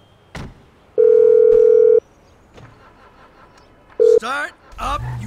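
A phone ringing tone sounds in steady beeps.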